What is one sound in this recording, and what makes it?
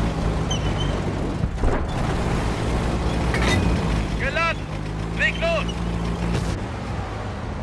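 A tank engine rumbles and clanks as the tank drives.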